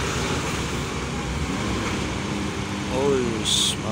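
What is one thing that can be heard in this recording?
A motorcycle engine hums as it passes close by.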